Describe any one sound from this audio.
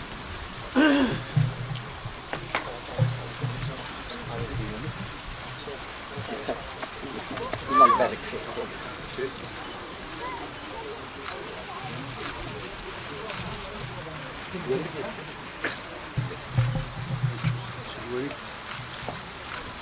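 Men chat nearby in low voices, outdoors.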